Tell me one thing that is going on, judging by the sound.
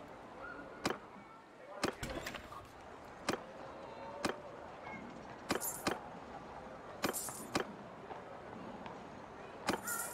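Short interface clicks sound as menu options are chosen.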